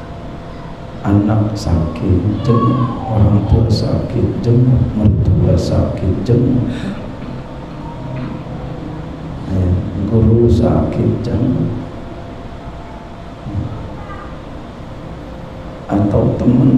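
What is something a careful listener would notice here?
A middle-aged man speaks calmly and slowly into a microphone, with pauses, in an echoing room.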